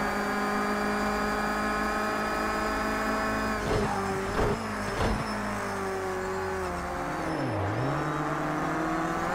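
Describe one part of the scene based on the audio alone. A racing car engine roars at high revs and then drops as the car brakes for a corner.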